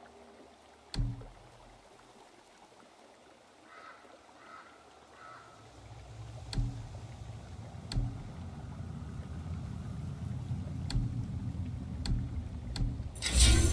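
Game menu clicks tick softly now and then.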